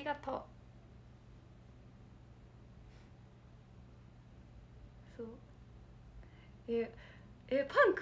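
A young woman speaks close to a microphone.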